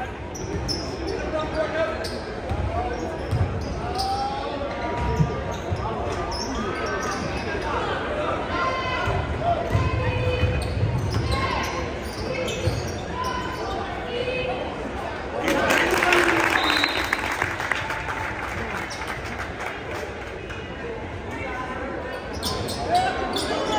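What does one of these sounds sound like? A crowd chatters and calls out across a large echoing gym.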